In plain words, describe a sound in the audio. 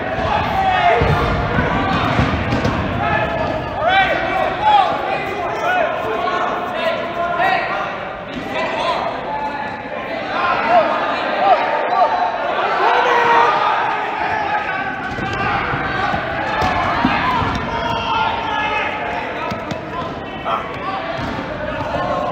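Players shout and call out to each other in a large echoing gym.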